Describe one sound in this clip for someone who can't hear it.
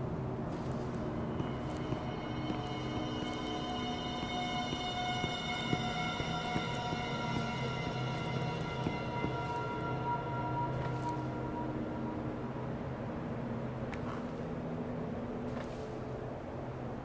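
Footsteps creak slowly on wooden planks.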